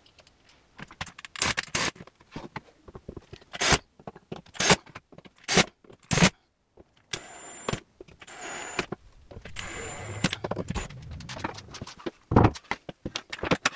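Items clatter and knock as they are handled on shelves.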